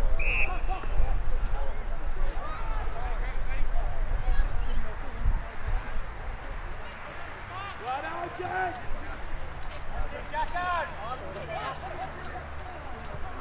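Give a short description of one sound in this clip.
Young men shout to each other from across an open field.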